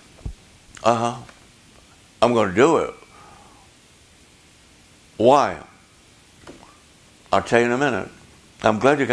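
An elderly man speaks slowly and expressively into a microphone, with long pauses.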